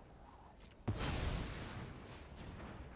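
A magical beam zaps with a rushing hiss.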